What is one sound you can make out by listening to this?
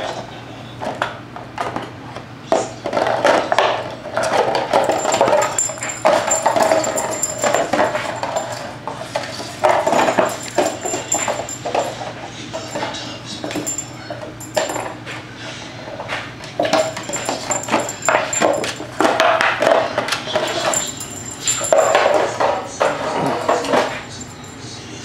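Small dogs growl and snarl as they play-fight.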